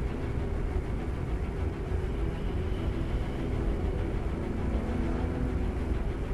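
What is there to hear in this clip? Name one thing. A spacecraft engine hums with a deep, steady rumble.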